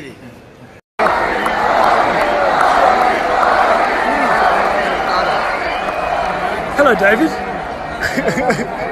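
A large stadium crowd roars and cheers in the open air.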